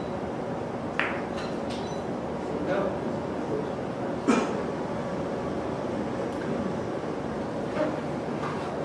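Billiard balls knock against each other and the cushions.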